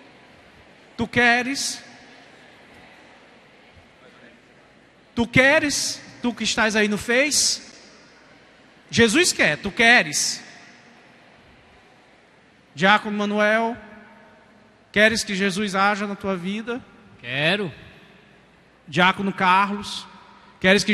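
A man speaks calmly into a microphone in short bursts.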